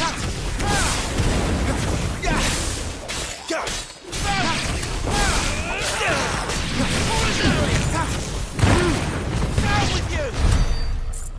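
Creatures shriek as they are struck.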